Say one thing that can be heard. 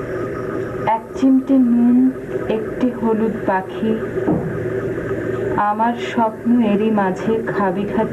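A man speaks calmly nearby.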